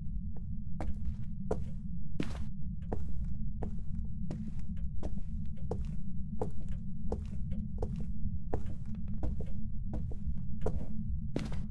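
Slow footsteps thud and creak on a wooden floor.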